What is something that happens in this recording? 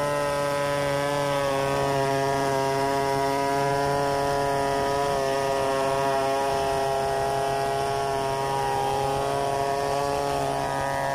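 A two-stroke chainsaw runs under load, ripping lengthwise through a log.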